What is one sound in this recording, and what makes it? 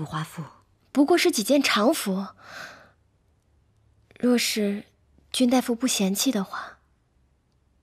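Another young woman speaks with animation.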